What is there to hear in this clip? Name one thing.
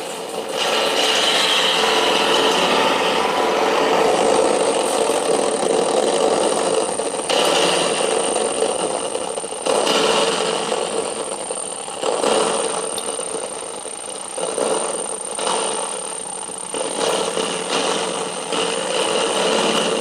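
A spring reverb tank rumbles and clangs as its springs are scraped with a wire.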